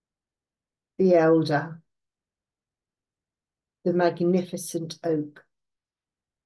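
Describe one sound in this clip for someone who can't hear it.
An older woman speaks calmly over an online call, in short phrases.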